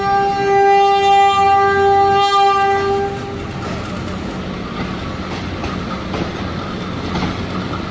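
Train wheels rumble and clack along the rails.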